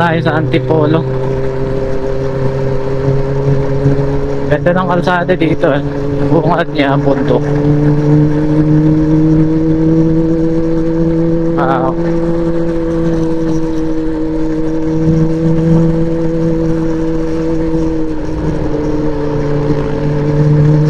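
A motorcycle engine hums steadily while riding, shifting pitch slightly near the end.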